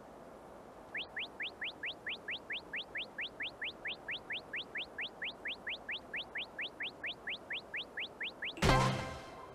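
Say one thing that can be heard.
Quick rising beeps tick rapidly and steadily.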